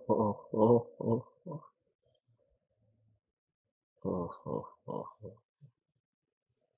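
A middle-aged man laughs softly close to a microphone.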